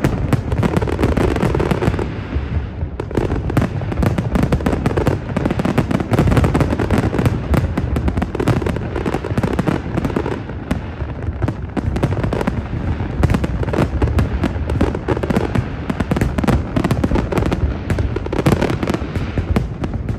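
Fireworks bang and crackle overhead in rapid bursts.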